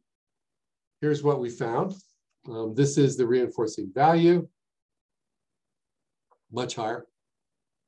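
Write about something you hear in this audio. An elderly man speaks calmly through an online call, pausing between phrases.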